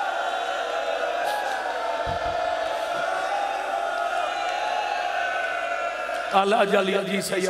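A crowd of men chants together loudly in an echoing hall.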